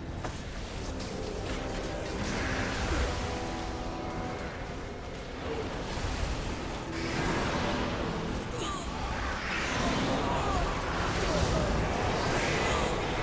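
Magic spells crackle and boom in a fantasy battle.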